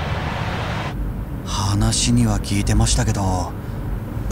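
A young man speaks quietly and hesitantly, close by.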